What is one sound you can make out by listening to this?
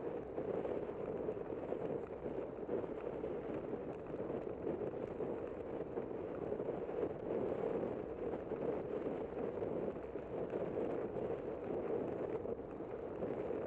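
Wind buffets the microphone steadily while riding outdoors.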